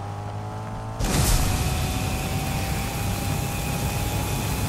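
A rocket boost roars loudly.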